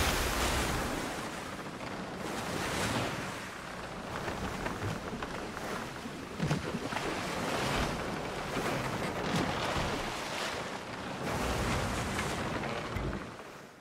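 Waves surge and splash against a small wooden boat's hull.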